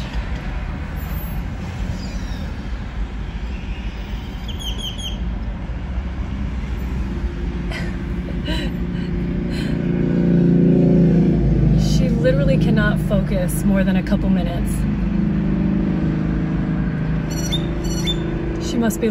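Cars rush past on a busy road nearby.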